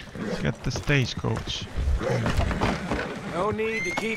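Wooden stagecoach wheels rattle and creak as they roll.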